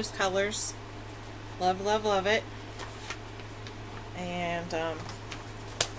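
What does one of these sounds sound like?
A woman speaks in short phrases close to a microphone.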